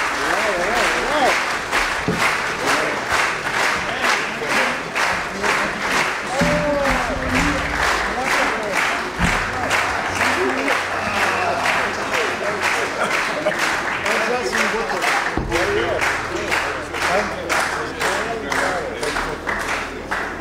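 A large audience claps in a steady rhythm in a big hall.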